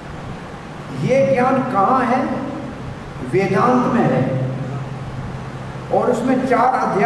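An elderly man speaks slowly and expressively into a microphone, in bursts with pauses.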